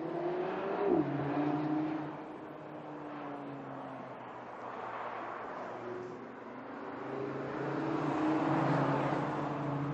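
A car engine roars and drops in pitch as it changes gear.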